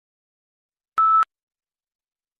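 A short electronic beep sounds once.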